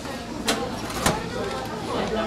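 A metal oven door clanks shut.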